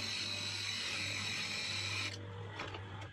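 A chisel scrapes against spinning wood with a harsh hiss.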